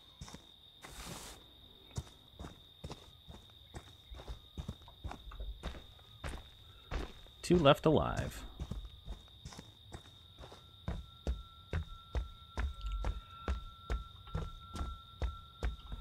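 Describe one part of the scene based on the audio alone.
Heavy footsteps thud at a steady walking pace.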